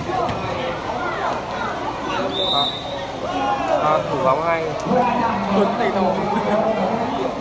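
Spectators cheer and shout excitedly.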